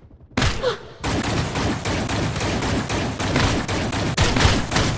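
Automatic rifle fire crackles in rapid bursts.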